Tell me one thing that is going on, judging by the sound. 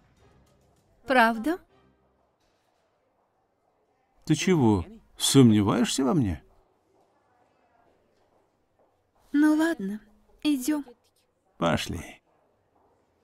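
A young woman speaks nearby.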